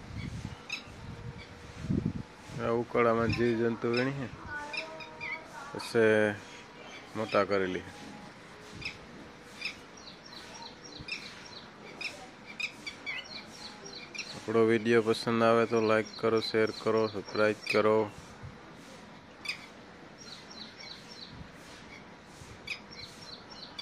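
Small birds chirp in short, high notes nearby.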